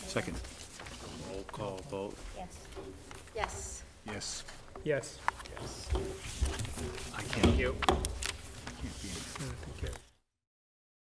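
A man speaks calmly through a microphone in a room with a slight echo.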